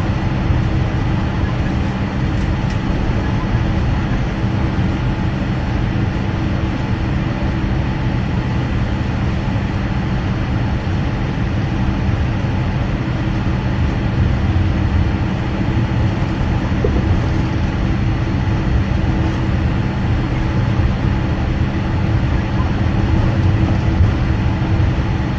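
An aircraft engine hums and rumbles steadily while taxiing.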